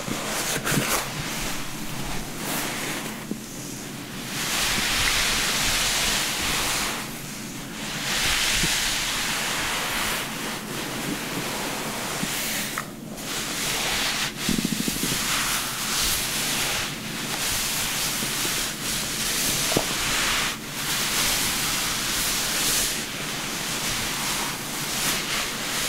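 A towel rubs softly against wet hair.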